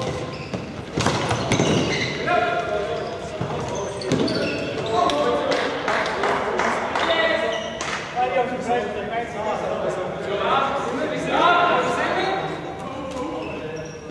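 Sticks clack against a plastic ball on a hard floor.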